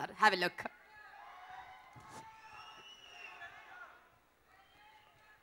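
A large crowd cheers and whistles in a big hall.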